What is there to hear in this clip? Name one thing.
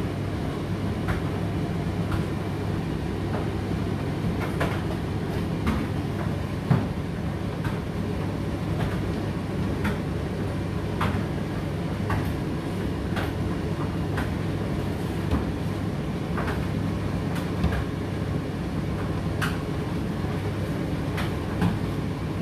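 A condenser tumble dryer hums as its drum turns through a cycle.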